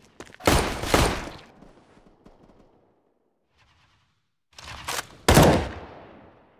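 Gunshots ring out loudly and echo.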